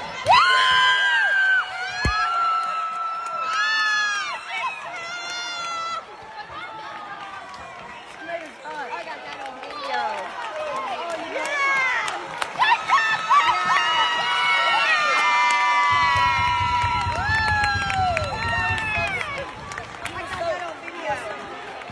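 A woman screams and cheers excitedly close by.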